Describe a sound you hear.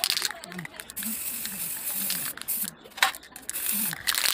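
An aerosol spray can hisses in short bursts.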